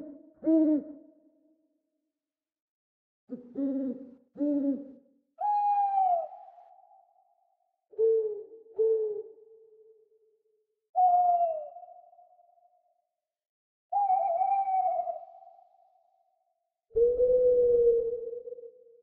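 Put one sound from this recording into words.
An owl hoots again and again in short, clear calls, with quiet pauses in between.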